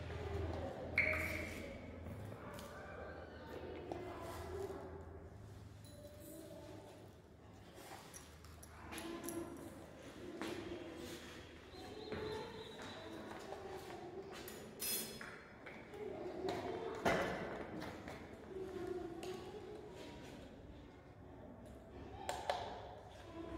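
Glassware clinks and knocks on a bench.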